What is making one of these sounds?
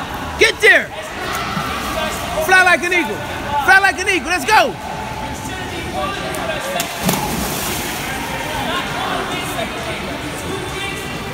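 Water splashes as swimmers kick and paddle.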